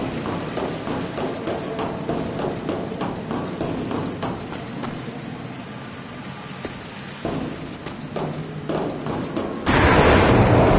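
Heavy footsteps clank on metal grating.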